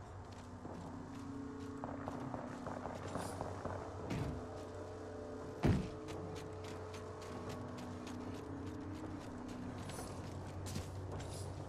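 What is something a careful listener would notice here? Quick footsteps thud on hard ground.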